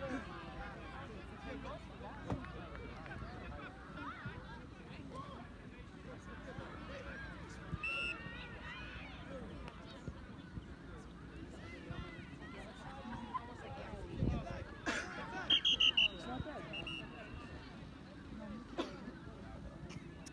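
Young players and adults call out across an open field outdoors.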